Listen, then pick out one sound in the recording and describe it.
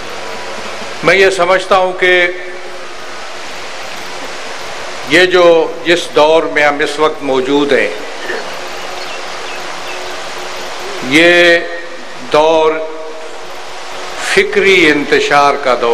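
An elderly man speaks forcefully through a microphone and loudspeakers, in bursts with pauses.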